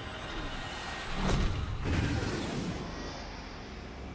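A heavy stone ring crashes with a loud, rumbling boom.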